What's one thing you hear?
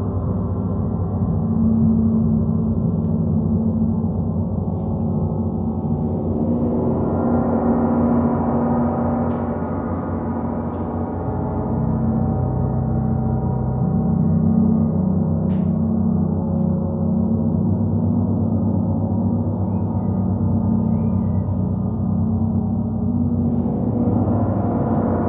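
Large gongs are played with a mallet, building a deep, swelling wash of ringing tones.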